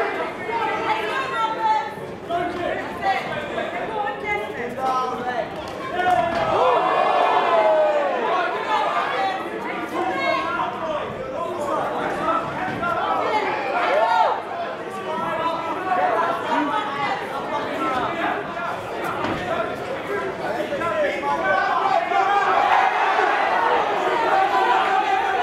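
A crowd of spectators shouts and cheers in a loud, echoing hall.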